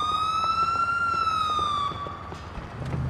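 A police siren wails briefly.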